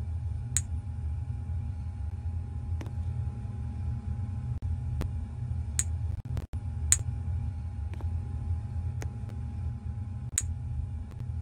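Short bright chimes ring out now and then.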